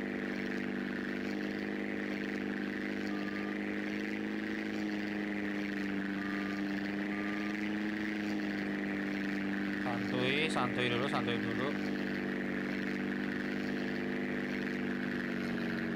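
A propeller plane's engine drones steadily throughout.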